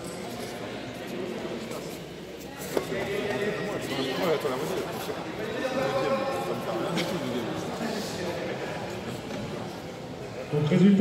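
Voices of a small crowd murmur and chatter, echoing in a large hall.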